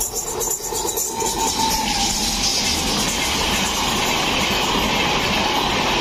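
Train wheels clatter rhythmically over the rails.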